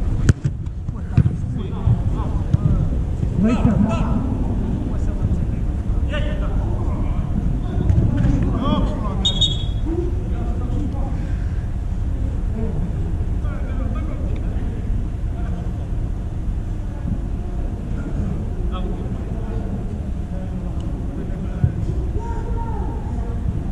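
Men shout to each other across a large echoing hall.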